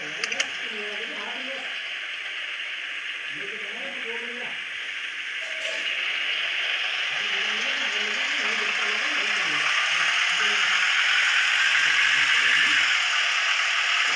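A bus engine hums steadily and slowly grows louder.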